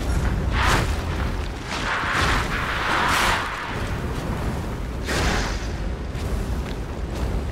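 Flames roar and burst in loud blasts.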